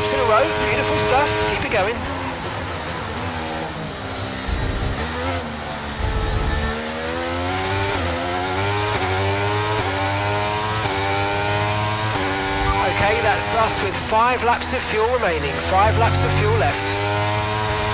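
A racing car engine screams, rising and falling in pitch as it shifts gears.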